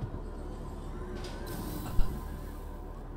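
Metal elevator doors slide open with a soft whoosh and a thud.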